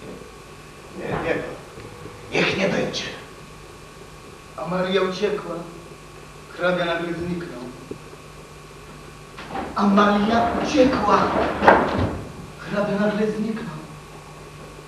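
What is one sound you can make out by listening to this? A man speaks out dramatically on a stage, with pauses between lines.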